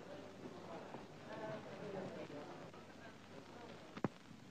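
An elderly man speaks quietly.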